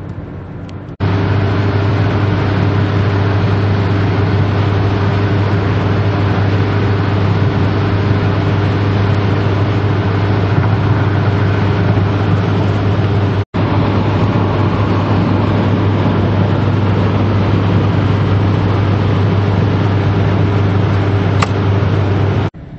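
A car engine drones steadily from inside the moving car.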